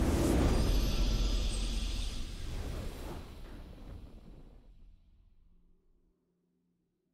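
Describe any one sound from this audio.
A triumphant game fanfare swells and fades.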